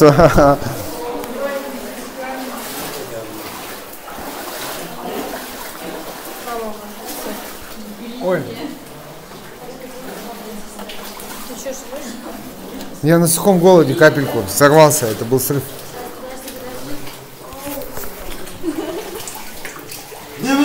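Several young people talk and call out with animation close by, their voices echoing in a cave.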